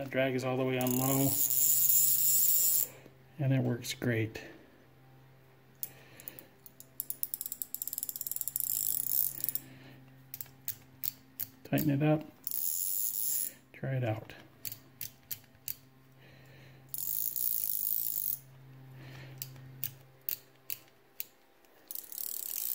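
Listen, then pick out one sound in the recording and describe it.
A fishing reel whirs and ticks as its handle is turned.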